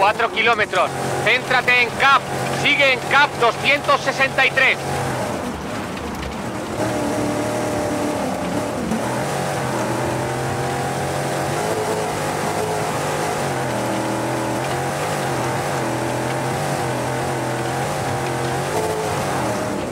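Tyres crunch over loose gravel.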